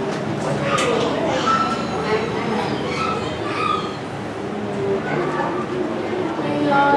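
A young woman speaks with animation into a microphone, heard through loudspeakers.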